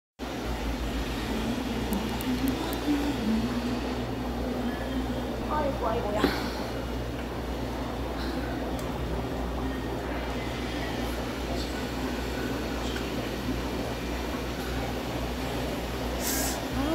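Air bubbles gurgle and fizz steadily in an aquarium.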